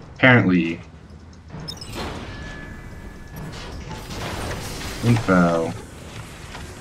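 A young man speaks casually into a close microphone.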